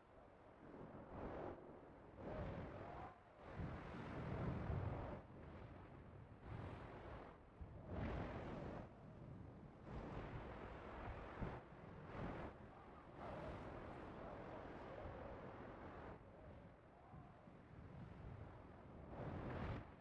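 A gun fires in bursts.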